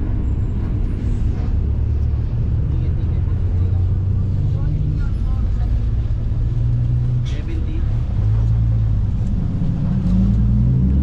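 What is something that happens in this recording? A bus engine rumbles low and steady, its pitch rising and falling.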